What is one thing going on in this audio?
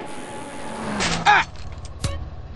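A bicycle crashes to the ground.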